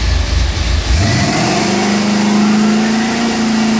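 A machine whirs and rises in pitch as it spins up.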